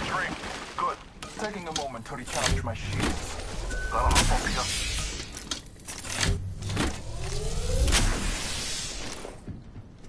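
A device charges up with a rising electric whirr.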